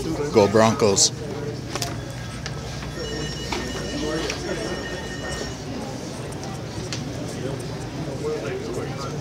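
A crowd of people chatters loudly all around in a large, echoing hall.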